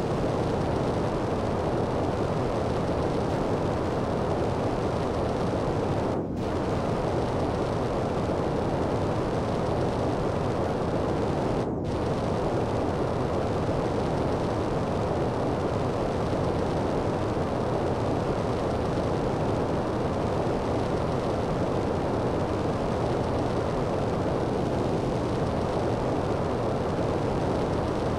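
A jetpack roars steadily.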